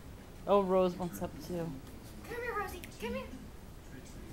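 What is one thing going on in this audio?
A young woman talks nearby in a high, playful voice.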